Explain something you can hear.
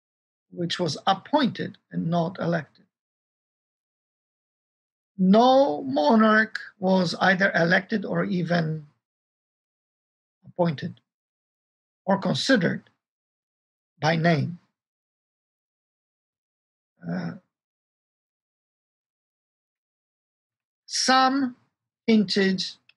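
A middle-aged man speaks calmly in bursts with pauses, heard through an online call.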